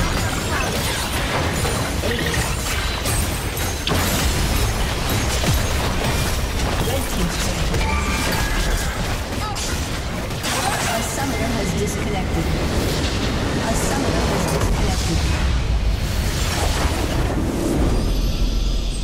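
Spell blasts and weapon hits clash rapidly in a busy game battle.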